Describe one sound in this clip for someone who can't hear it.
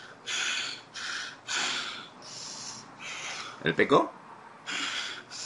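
A young man sobs and gasps heavily over an online call.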